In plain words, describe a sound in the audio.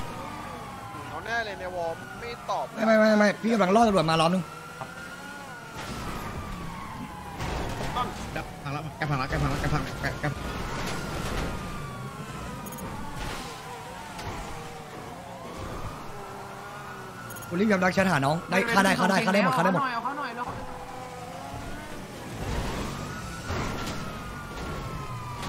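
A police siren wails up and down nearby.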